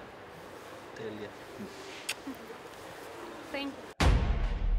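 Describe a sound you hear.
A man speaks quietly.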